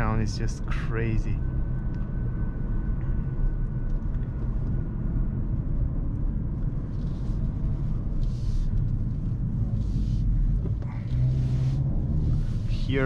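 A car engine hums steadily from inside the cabin as the car drives along.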